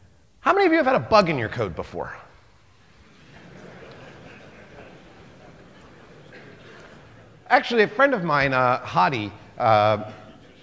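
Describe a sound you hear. A man speaks with animation through a microphone in a large hall, pausing in between.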